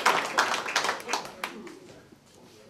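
An audience claps and then fades.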